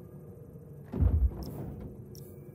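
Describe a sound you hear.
A metal crate lid swings open with a heavy clunk.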